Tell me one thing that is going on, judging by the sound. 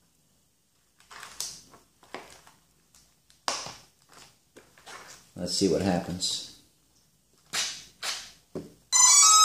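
Plastic connectors click and rattle as they are handled.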